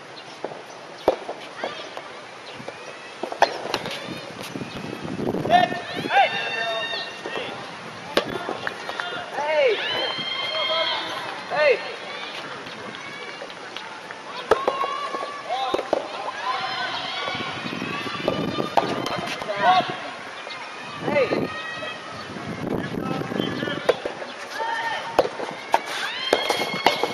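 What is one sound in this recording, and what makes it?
A tennis ball is struck with sharp pops back and forth.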